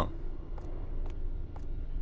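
Footsteps tap on a concrete floor.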